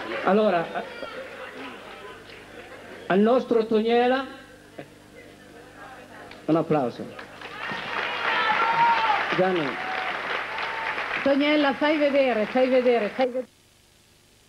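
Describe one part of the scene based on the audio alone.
A man speaks into a microphone with animation, heard through a loudspeaker in an echoing hall.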